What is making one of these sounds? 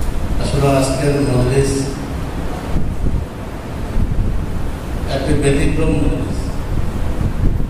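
A man speaks slowly and calmly into a microphone, heard through a loudspeaker in an echoing room.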